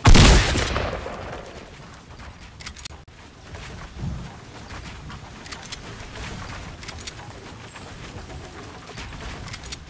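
Wooden walls snap into place with quick clicks.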